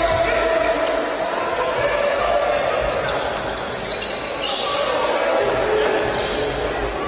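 A small crowd murmurs in an echoing hall.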